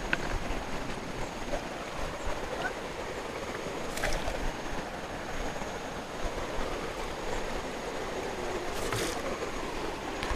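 A stream burbles and trickles over rocks close by.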